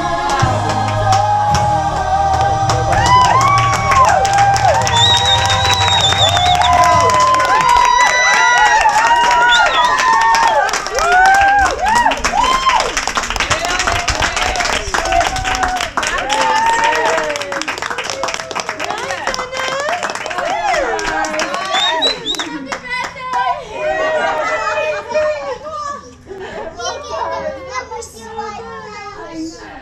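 A group of women cheer and whoop excitedly close by.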